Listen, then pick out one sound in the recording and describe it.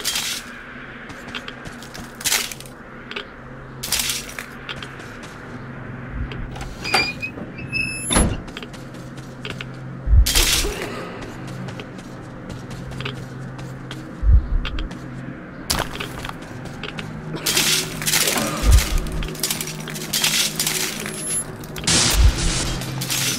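Footsteps thud and scrape on a hard, gritty floor.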